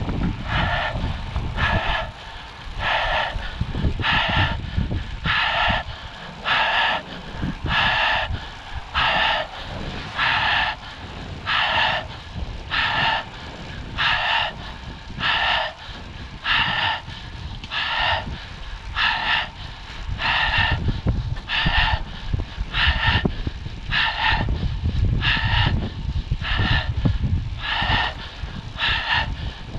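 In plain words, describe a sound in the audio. Bicycle tyres hum on smooth asphalt.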